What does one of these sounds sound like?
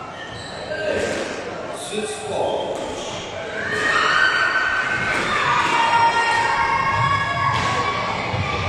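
A squash ball smacks against the walls, echoing in a large hall.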